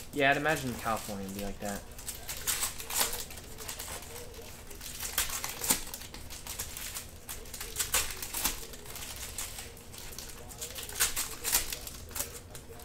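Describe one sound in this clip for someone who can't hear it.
Foil card wrappers crinkle and rustle as they are torn open.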